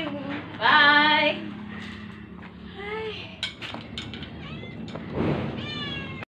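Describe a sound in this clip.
A young woman shouts and sings out loudly close by.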